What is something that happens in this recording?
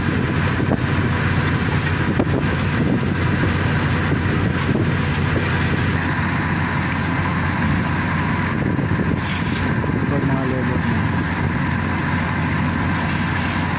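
Shovels scrape and rake across loose asphalt.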